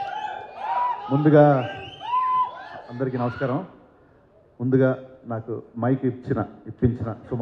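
A man speaks loudly through a microphone over loudspeakers.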